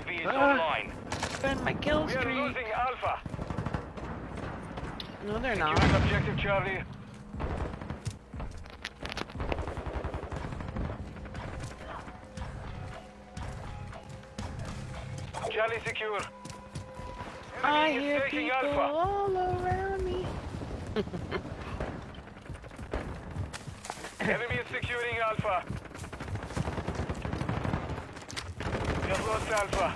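Rapid gunshots crack from a video game.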